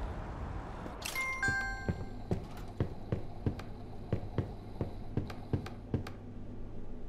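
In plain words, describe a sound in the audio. Short game interface clicks tick over and over.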